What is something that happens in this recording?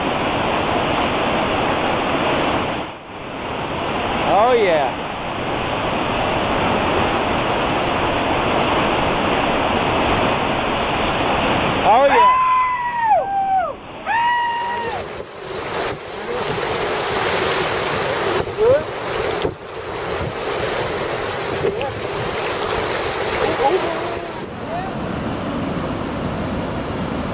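White-water rapids roar loudly and steadily.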